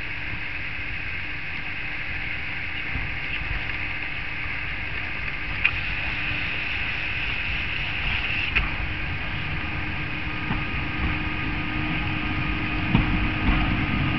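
A diesel engine rumbles steadily as a rail vehicle approaches slowly.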